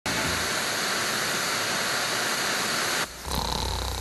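Television static hisses steadily.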